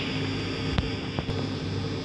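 A button clicks as a finger presses it.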